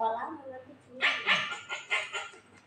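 A young woman giggles close to a phone microphone.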